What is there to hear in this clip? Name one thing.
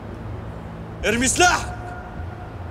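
A young man cries out sharply, close by.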